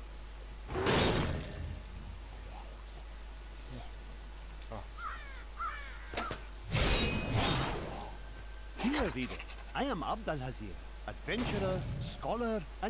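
A magic spell bursts with a loud whooshing blast.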